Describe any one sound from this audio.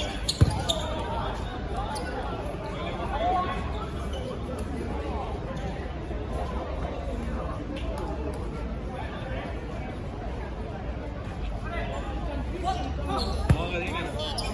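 A ball thuds on the hard ground.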